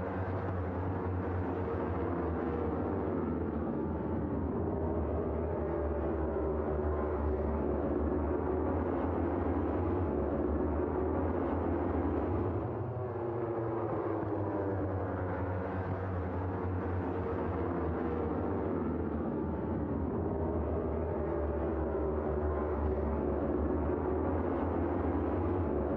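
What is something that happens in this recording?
Racing motorcycle engines scream and whine as they pass.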